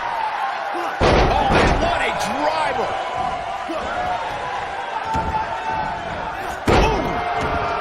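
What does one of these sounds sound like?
Heavy bodies slam onto a wrestling ring mat with loud thuds.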